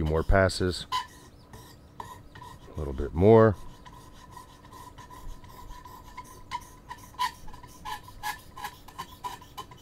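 A sharpening stone scrapes in short strokes along a knife blade.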